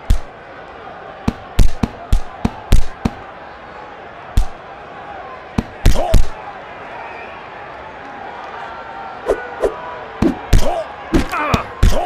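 Punches thud in quick bursts.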